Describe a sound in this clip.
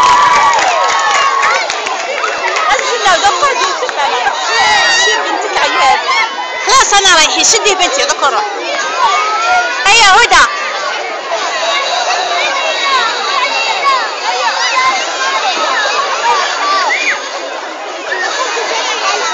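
A crowd of young children chatter and shout excitedly close by.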